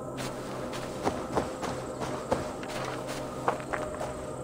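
Hands grip and knock against tree bark while climbing.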